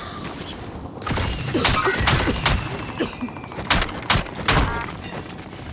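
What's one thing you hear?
Short clicks and clatters sound as gear is picked up.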